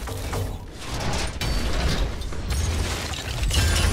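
A metal crate lid creaks open.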